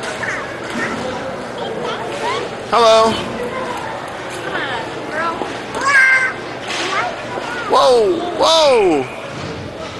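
Hockey sticks clack against a ball and each other in a large echoing hall.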